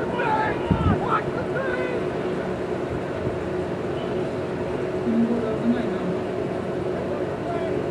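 Young men shout and call out across an open field, heard from a distance outdoors.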